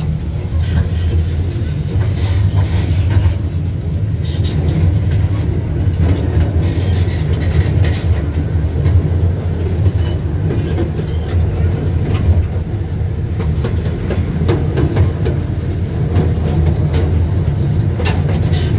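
A car engine rumbles steadily as the car drives slowly.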